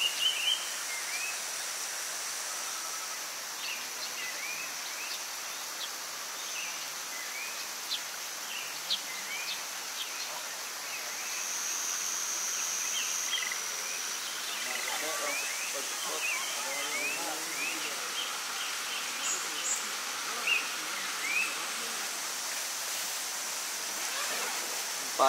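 Steady rain patters outdoors.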